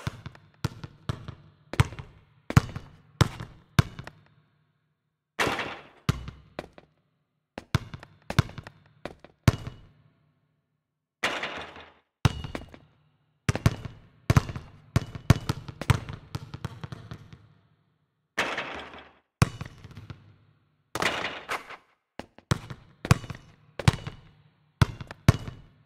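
A basketball bounces sharply on an outdoor court.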